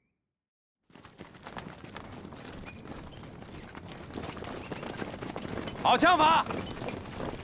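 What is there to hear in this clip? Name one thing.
Horses' hooves clatter as riders move along a track.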